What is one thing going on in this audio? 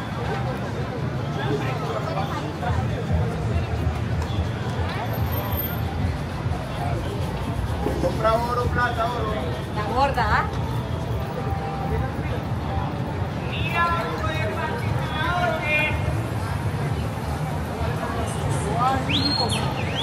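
A crowd of people chatters and footsteps shuffle on a busy street outdoors.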